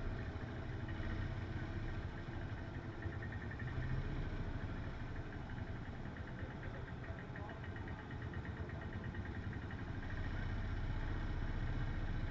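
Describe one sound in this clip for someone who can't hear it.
Racing kart engines idle and rumble close by.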